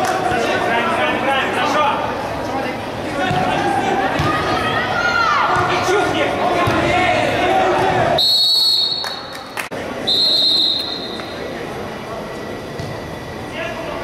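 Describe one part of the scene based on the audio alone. Men shout and call out to each other across an echoing indoor hall.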